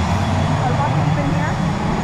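An older woman speaks through a face mask close by.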